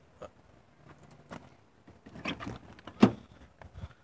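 A car door latch clicks as the door opens.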